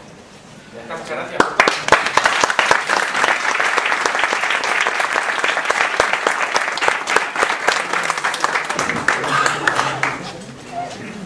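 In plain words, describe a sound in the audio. An audience applauds loudly in a room.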